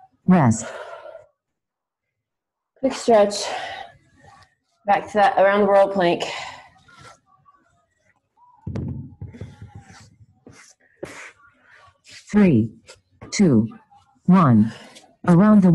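A woman talks and gives instructions over an online call, in bursts with pauses.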